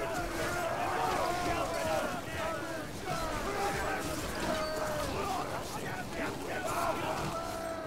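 Swords clash and soldiers fight in a battle.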